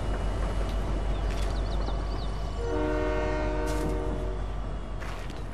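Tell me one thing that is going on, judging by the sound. A train rumbles along steadily and then fades.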